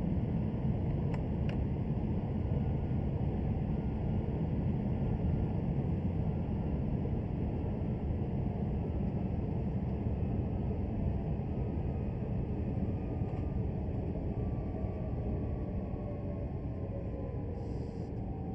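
A train rumbles steadily along the track, slowing down.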